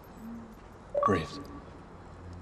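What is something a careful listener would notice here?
A man speaks a short word sharply.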